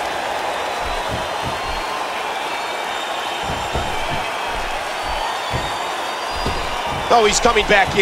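Heavy thuds of bodies and blows land on a wrestling ring.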